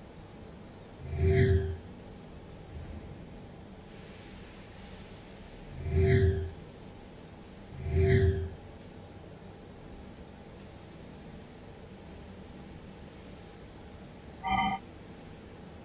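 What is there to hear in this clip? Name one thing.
Short eerie whooshing effects sound a few times.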